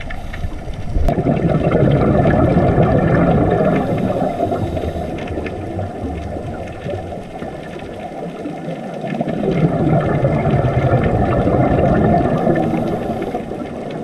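Air bubbles from a diver's breathing gurgle and rumble underwater.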